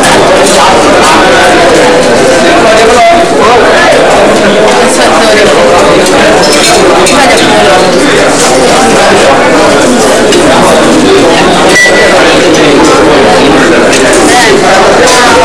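A crowd of young people chatters nearby.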